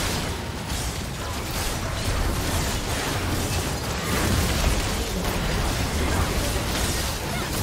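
Game spell effects and weapon hits crackle and boom in a busy fight.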